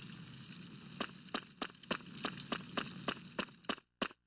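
Footsteps tap steadily on a stone floor.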